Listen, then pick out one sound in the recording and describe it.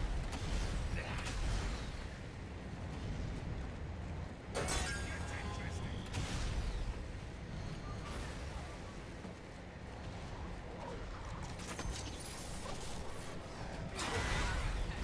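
A weapon fires in loud bursts.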